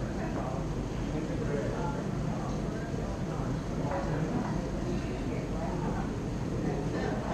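An electric guitar plays a strummed rhythm through an amplifier.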